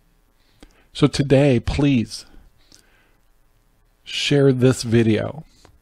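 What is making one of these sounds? An older man speaks calmly and close into a microphone, in short bursts.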